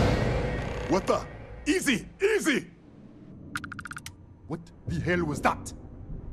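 A man speaks in a startled, urgent way close by.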